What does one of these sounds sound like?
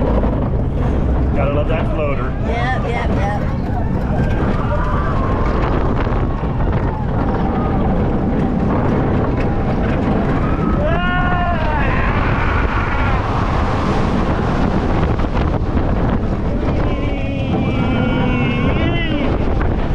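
A middle-aged man shouts and laughs close by.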